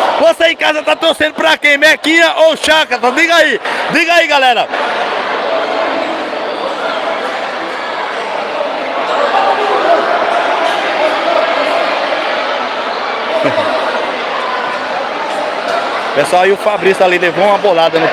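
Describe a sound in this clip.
A large crowd chants loudly in an echoing hall.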